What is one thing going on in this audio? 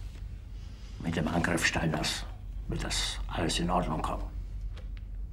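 A middle-aged man speaks.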